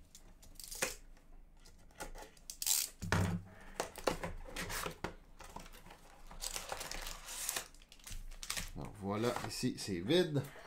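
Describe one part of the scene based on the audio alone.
Cardboard and plastic wrap rustle and crinkle as a box is opened.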